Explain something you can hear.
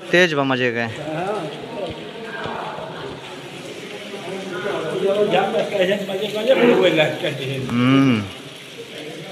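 Men talk loudly and with animation close by.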